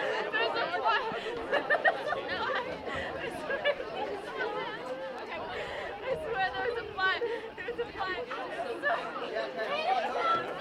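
Young women and spectators shout and call out nearby across an open field.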